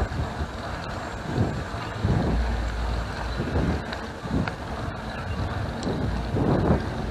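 Bicycle tyres roll over smooth pavement.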